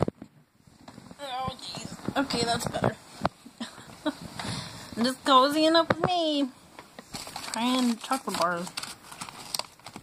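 A young woman speaks and laughs with animation close by.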